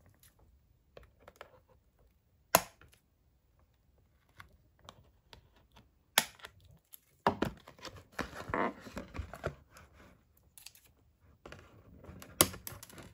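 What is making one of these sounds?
Scissors snip through cardboard packaging.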